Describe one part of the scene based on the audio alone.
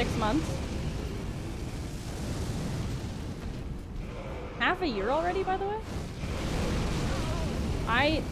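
Flames roar in a loud burst.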